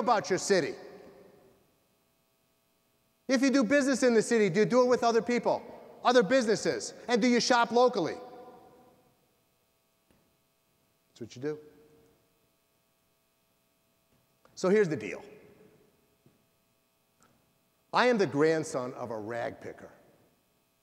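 A middle-aged man speaks with animation through a microphone, echoing in a large hall, with pauses between phrases.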